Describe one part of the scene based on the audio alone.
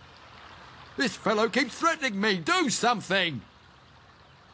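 A man speaks with animation, close and clear.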